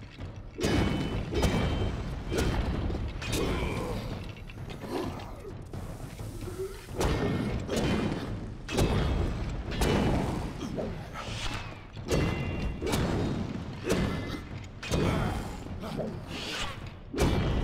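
Magic blasts crackle and whoosh in bursts.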